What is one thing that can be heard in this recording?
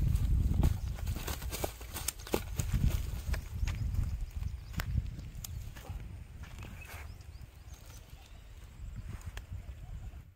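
A caught fish flaps and thumps on the grassy ground.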